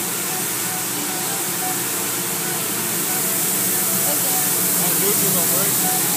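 Water sprays and hisses steadily.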